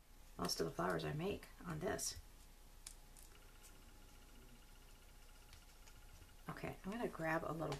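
Paper rustles softly as fingers fold and press it.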